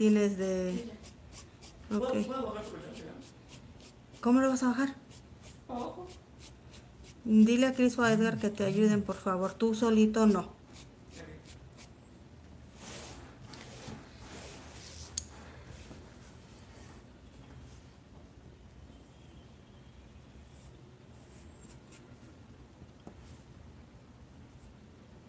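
A paintbrush dabs and scrubs softly on cloth.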